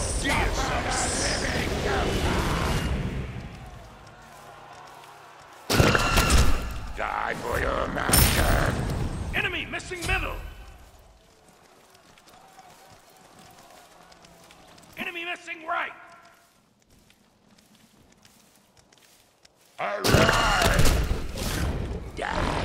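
Game sound effects of magic spells and bursts play loudly.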